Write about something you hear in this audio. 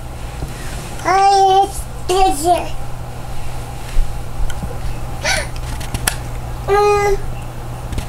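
A toddler girl squeals and babbles close by.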